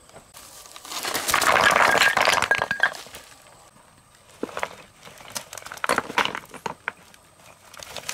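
Stones tumble and clatter onto a pile.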